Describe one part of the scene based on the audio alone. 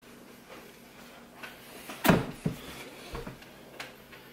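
A man sits down heavily on a chair.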